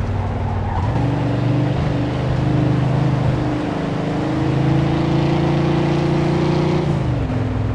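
A car engine hums and revs as the car drives along.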